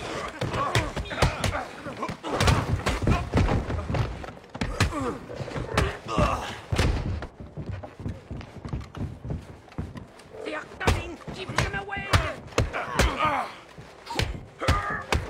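Punches land with sharp thuds during a brawl.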